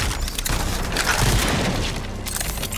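A blast booms with a deep rumble.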